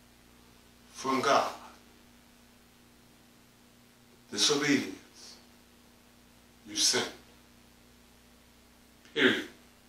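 A middle-aged man preaches with animation in short, forceful bursts.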